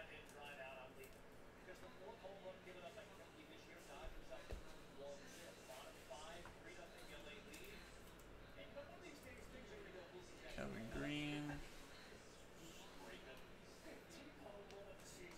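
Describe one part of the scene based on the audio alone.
Trading cards rustle and slide in a plastic sleeve.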